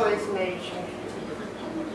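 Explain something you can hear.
An older woman speaks briefly and calmly.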